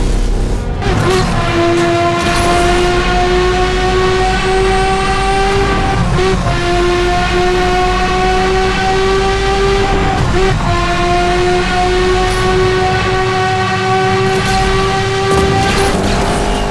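A racing car engine whines loudly and steadily, dipping briefly as it shifts gears.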